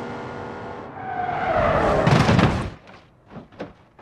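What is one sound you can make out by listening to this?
Cars crash violently with loud metallic bangs and crunches.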